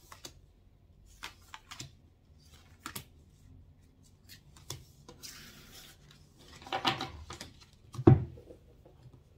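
Paper cards rustle and slide as they are gathered from a table.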